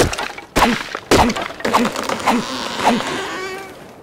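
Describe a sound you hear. A hatchet chops into a tree trunk with sharp thuds.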